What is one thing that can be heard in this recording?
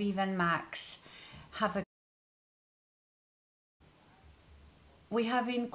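A woman speaks with animation, close to a microphone, with a short silent gap.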